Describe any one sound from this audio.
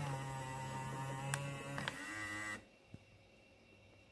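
A plastic front panel on a car stereo clicks as it folds shut.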